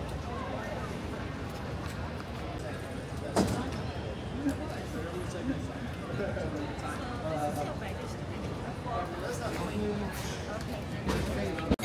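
Many voices murmur and echo in a large hall.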